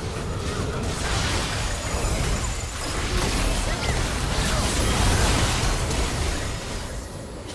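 Magic spells crackle and boom in a fierce battle.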